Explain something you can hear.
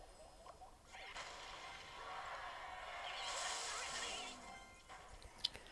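Video game battle sounds clash and rumble.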